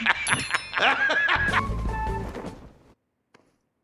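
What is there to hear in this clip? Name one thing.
A man laughs loudly and heartily.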